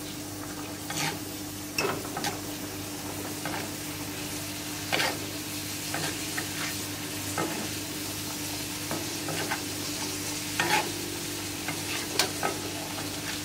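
A metal skimmer clinks and scrapes against a pan.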